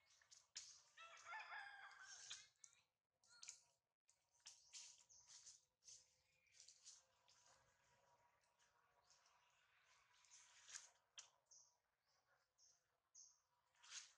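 A baby monkey squeaks and whimpers close by.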